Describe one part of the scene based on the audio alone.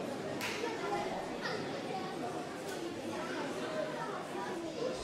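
A crowd of children and adults chatters throughout a large echoing hall.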